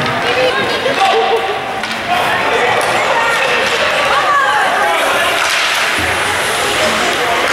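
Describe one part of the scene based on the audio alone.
Young children shout in a large echoing rink.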